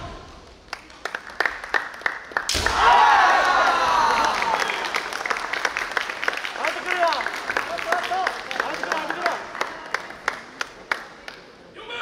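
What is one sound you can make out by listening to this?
Spectators clap their hands in scattered applause.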